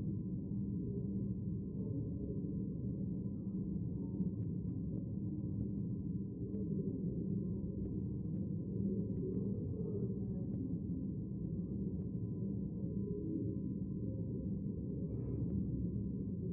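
A murmur of many people talking quietly fills a large echoing hall.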